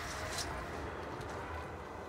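Footsteps run across stone paving.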